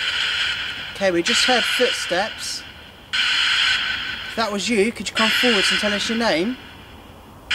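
An adult man speaks.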